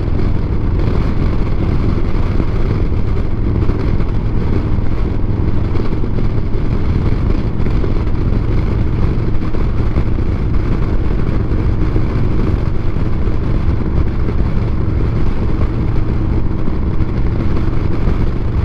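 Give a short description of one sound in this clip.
Wind rushes loudly past the rider.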